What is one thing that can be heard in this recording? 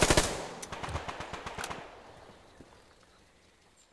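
A rifle is reloaded with a fresh magazine.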